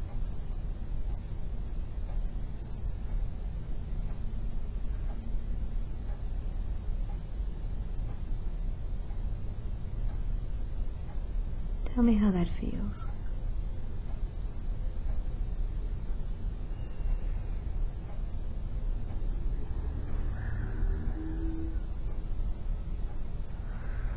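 A woman breathes slowly and softly in her sleep.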